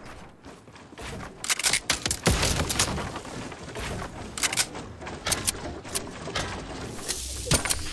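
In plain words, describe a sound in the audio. Wooden walls snap into place with quick knocks and clicks.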